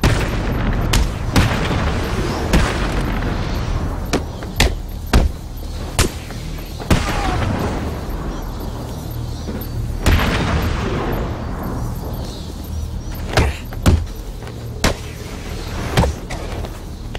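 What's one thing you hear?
Punches and kicks land with sharp thuds in a fight.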